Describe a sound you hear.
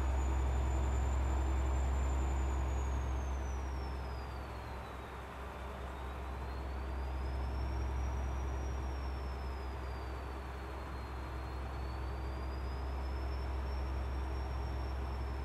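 A truck engine hums low and steady while driving.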